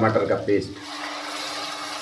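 Thick puree pours into a hot pan.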